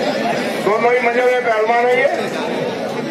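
A man shouts loudly in a long drawn-out call nearby.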